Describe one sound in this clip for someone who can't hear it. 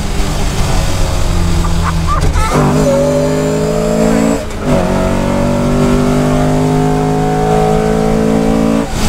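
A race car engine roars loudly from inside the cabin, revving up through the gears.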